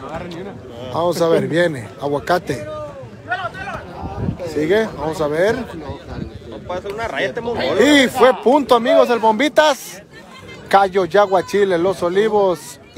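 Men shout loudly nearby during play.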